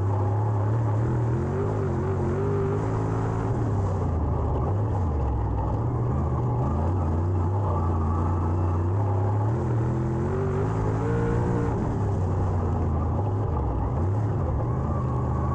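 Tyres rumble over loose dirt.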